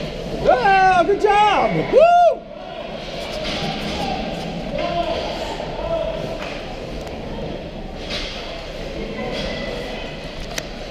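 Ice skates scrape and glide across an ice rink in a large echoing hall.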